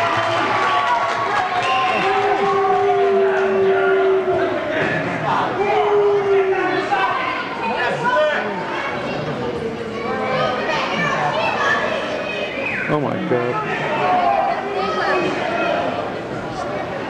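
A man announces through a loudspeaker in a large echoing hall.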